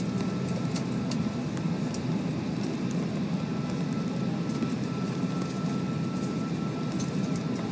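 A steady low hum of aircraft engines drones on.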